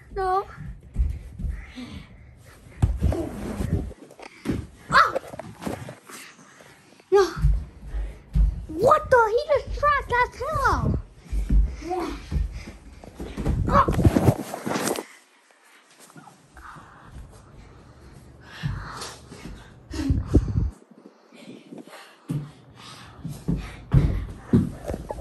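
Fabric rustles and swishes close by.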